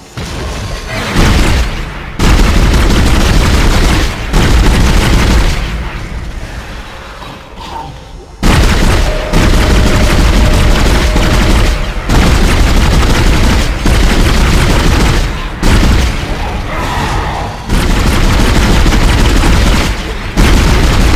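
A weapon fires in loud, heavy blasts.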